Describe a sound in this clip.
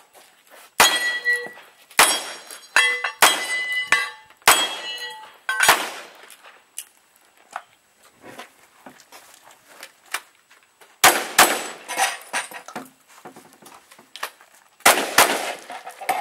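Gunshots crack loudly outdoors, one after another.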